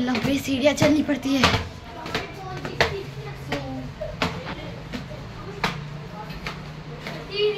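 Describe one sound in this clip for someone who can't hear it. Slippers slap and scuff on steps and a hard floor.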